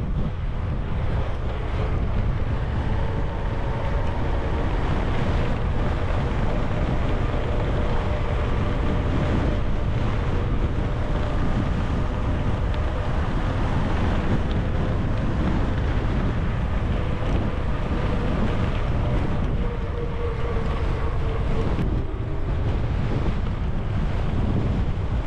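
Wind rushes and buffets loudly past a cyclist moving fast downhill.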